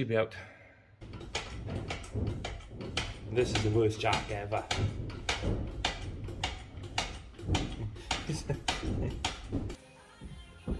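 Metal parts clank and knock.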